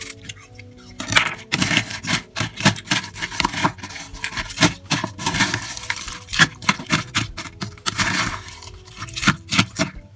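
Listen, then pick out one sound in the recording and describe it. A spoon scrapes and clicks against a plastic bowl.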